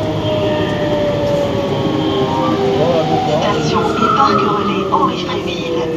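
Another train rushes past in the opposite direction.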